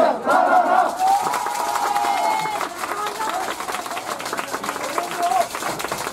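Young men shout and cheer as they break apart.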